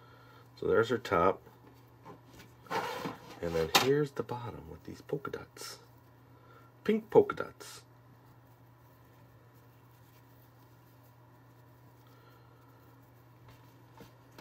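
Fabric rustles softly under fingers.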